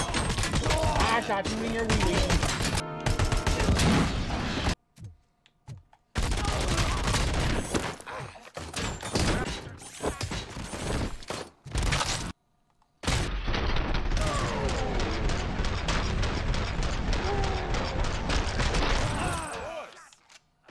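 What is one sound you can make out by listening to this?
Gunshots fire in rapid bursts.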